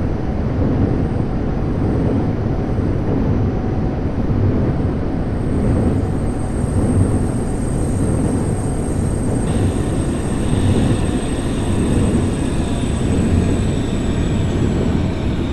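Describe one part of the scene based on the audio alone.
A train rumbles steadily along the tracks, heard from inside the carriage.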